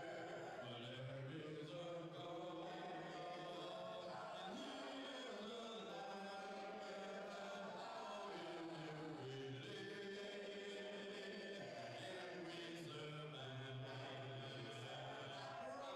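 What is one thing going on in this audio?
An older man sings loudly into a microphone in a large echoing hall.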